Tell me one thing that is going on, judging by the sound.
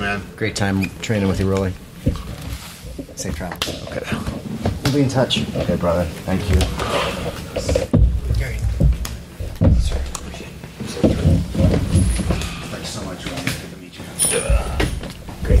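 Several men talk over each other loudly close to microphones.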